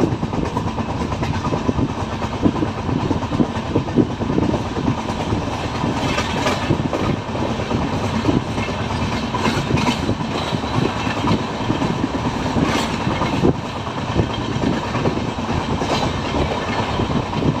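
Wind rushes past the open window.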